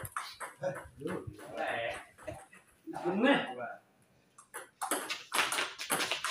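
A ping pong ball clicks against paddles and the table.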